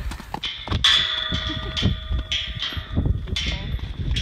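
A horse gallops across soft grass.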